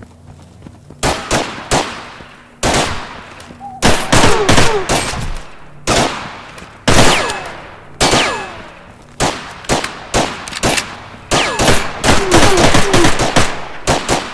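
Gunshots crack and echo outdoors in rapid bursts.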